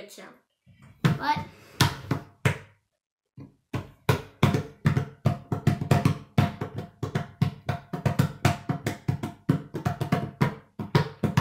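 Fingers tap quickly and rhythmically on a wooden table.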